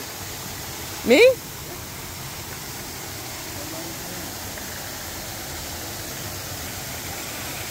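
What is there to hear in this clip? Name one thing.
A small waterfall splashes steadily nearby.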